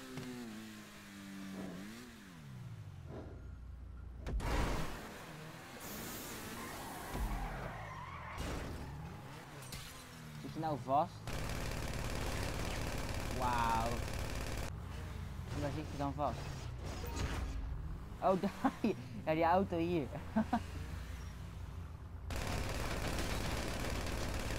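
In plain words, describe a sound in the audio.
A sports car engine revs and roars.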